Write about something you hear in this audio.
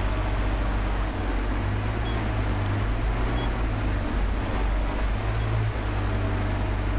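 Tyres crunch over rough, stony ground.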